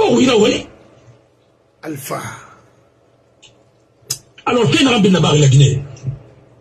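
A middle-aged man speaks with animation close to a microphone, in bursts with pauses.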